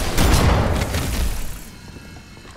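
An explosion bursts with a loud blast.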